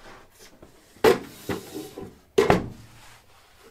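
A plastic bin knocks and scrapes as it is pulled out of a machine.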